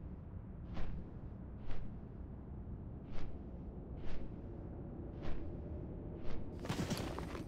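Large wings beat with whooshing flaps.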